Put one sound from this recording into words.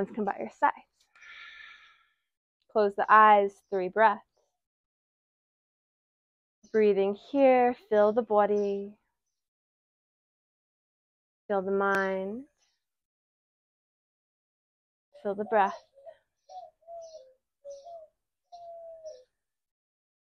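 A young woman speaks calmly and clearly, close by, in short phrases with pauses.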